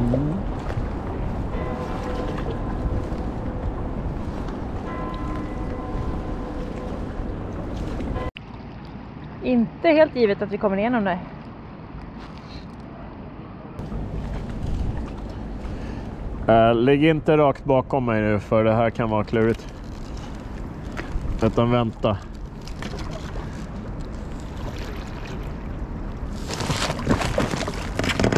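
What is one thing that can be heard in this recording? Water laps gently against a small boat.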